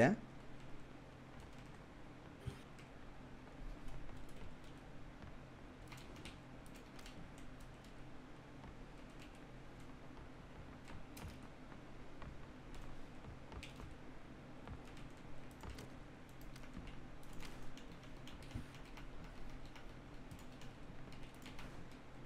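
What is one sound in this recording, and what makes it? Footsteps thud and creak on wooden planks.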